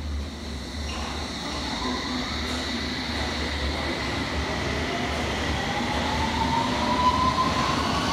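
An underground train pulls away with a rising electric whine.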